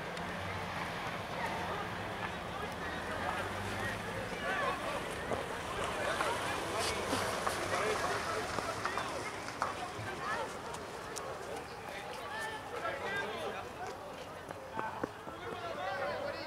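Young players shout and call to each other across an open field.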